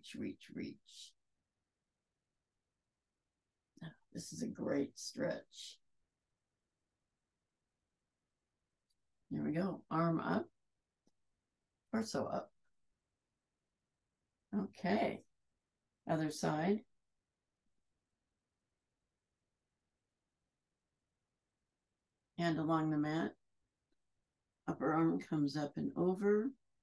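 A woman speaks calmly in short phrases, close to a microphone.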